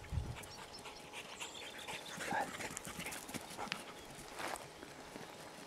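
A dog runs over gravel and dry undergrowth, its paws crunching and rustling.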